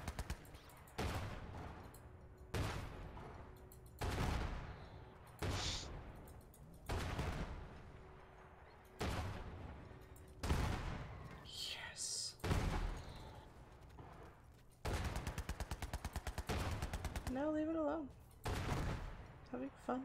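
Explosions boom and crack.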